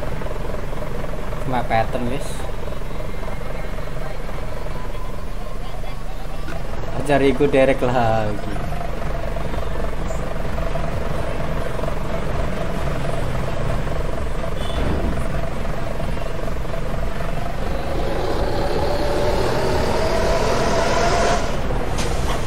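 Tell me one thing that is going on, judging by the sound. A bus engine drones steadily and rises in pitch as it speeds up.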